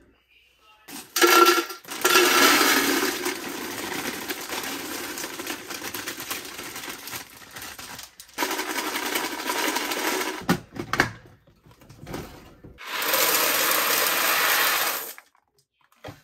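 Dry pasta pours and rattles into a plastic container.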